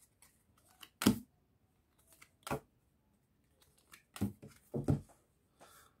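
Cards slap down onto a table.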